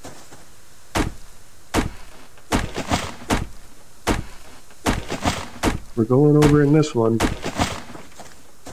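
An axe chops into a tree trunk with sharp, repeated knocks.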